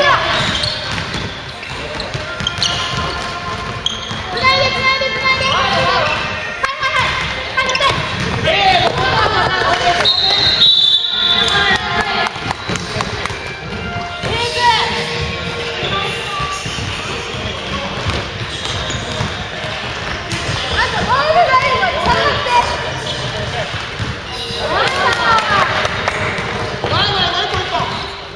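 Young players shout and call out to each other in an echoing hall.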